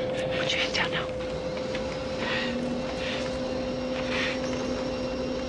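A woman speaks urgently up close.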